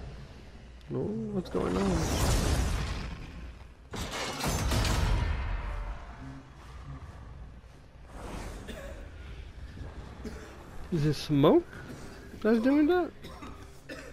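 A man shouts out in strain.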